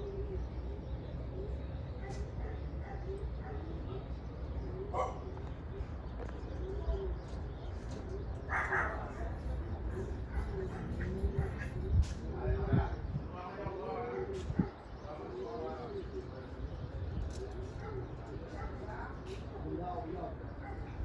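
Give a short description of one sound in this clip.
Pigeons coo softly and repeatedly close by.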